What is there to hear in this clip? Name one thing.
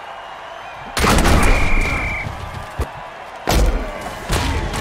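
Armoured players crash together in heavy tackles.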